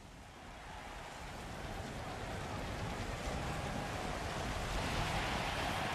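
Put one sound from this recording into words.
Fireworks hiss and crackle.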